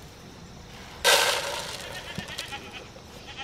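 Dry feed rattles as it pours into a plastic bowl.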